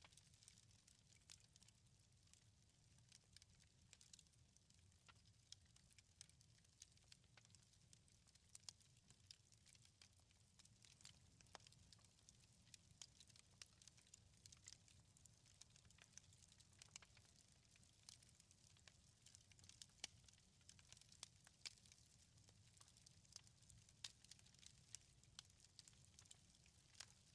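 Small stones click and clack together in cupped hands.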